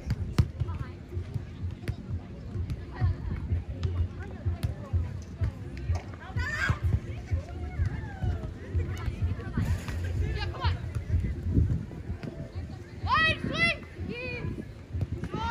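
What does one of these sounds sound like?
A volleyball is hit with dull thumps.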